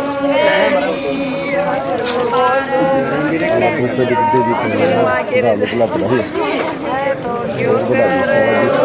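Several women sing together close by.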